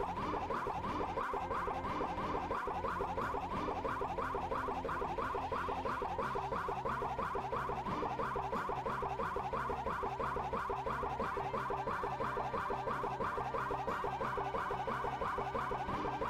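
Fast, upbeat video game battle music plays with a repeating melody.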